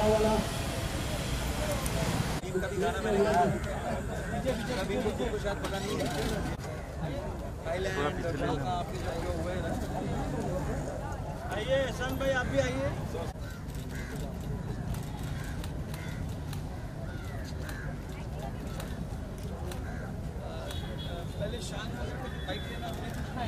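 A crowd chatters and calls out.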